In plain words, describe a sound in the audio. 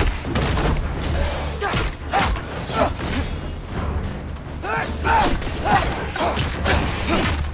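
A creature growls and roars.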